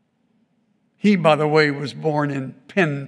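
An elderly man speaks clearly through a microphone, reading out.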